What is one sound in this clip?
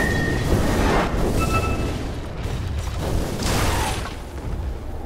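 Magic blasts and weapon clashes crackle and boom in a fierce fight.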